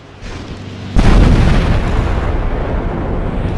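Loud rumbling crashes sound as a giant scrambles up a brick wall.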